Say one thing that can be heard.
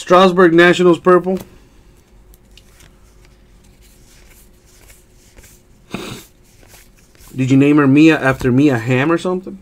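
Trading cards rustle and slide as a hand flips through them.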